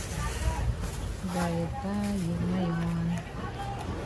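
A plastic bag rustles as it is opened and filled.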